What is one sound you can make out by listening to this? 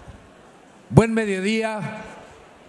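A man speaks into a microphone over a loudspeaker.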